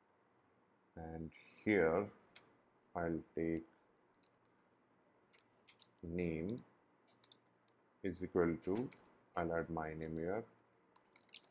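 A man speaks calmly and close to a microphone, in short phrases with pauses.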